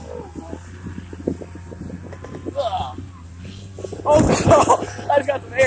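A sled hisses and scrapes over snow.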